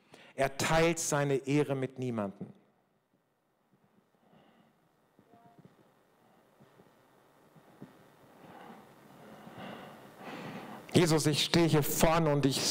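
An older man speaks calmly into a microphone, heard through loudspeakers in a large echoing space.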